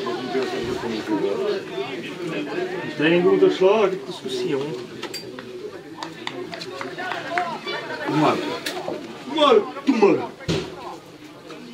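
Several men shout and call out across an open field.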